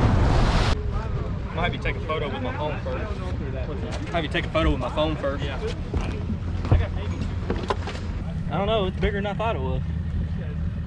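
Men talk casually nearby outdoors.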